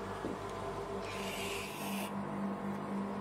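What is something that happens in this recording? A whipped cream can hisses briefly.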